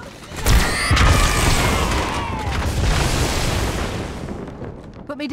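A loud burst of blasts and crackling explosions rings out, then fades.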